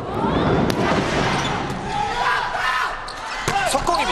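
A volleyball is struck hard during a rally.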